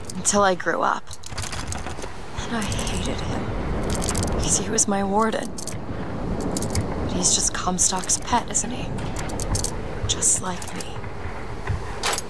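Metal clicks and scrapes in a door lock.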